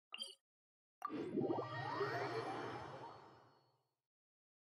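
A shimmering magical whoosh rises and then slowly fades.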